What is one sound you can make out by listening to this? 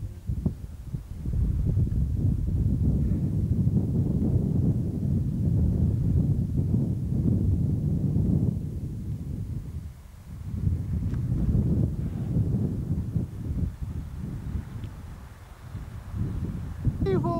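Wind gusts outdoors, buffeting the microphone with a low rumble.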